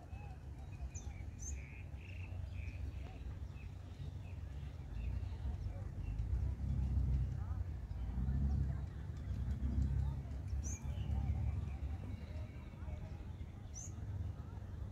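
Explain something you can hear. A small bird chirps now and then.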